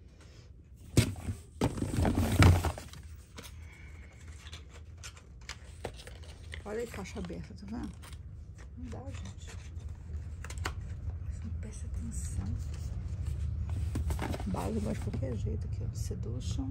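Plastic bottles and boxes knock and rustle as a hand rummages among them.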